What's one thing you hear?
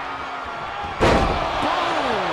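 A body slams hard onto a wrestling ring mat with a loud thud.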